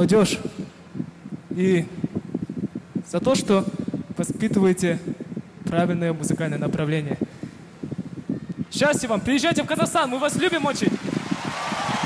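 A young man sings into a microphone.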